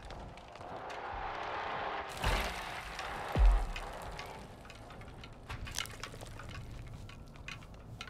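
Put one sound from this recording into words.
Footsteps creak on wooden floorboards.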